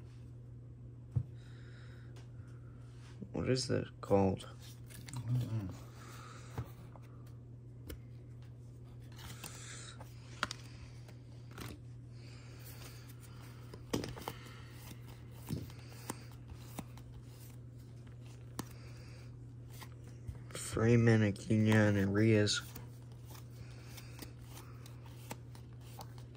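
Trading cards softly rustle and slide against each other in the hands.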